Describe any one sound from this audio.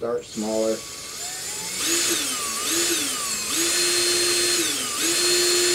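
A cordless drill whirs, speeding up and slowing down in bursts.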